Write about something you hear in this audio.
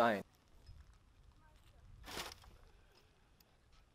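Clumps of dirt drop into a metal wheelbarrow.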